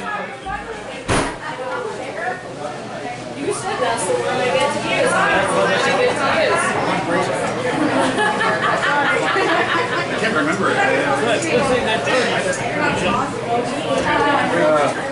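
A rock band plays loudly.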